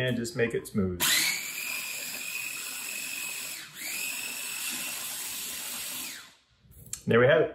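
A small food processor whirs steadily, then stops.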